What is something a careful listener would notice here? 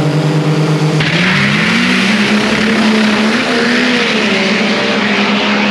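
A truck's engine roars at full throttle as the truck speeds away.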